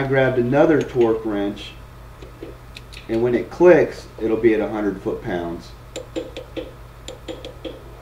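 A wrench turns a nut on a wheel hub with a ratcheting click.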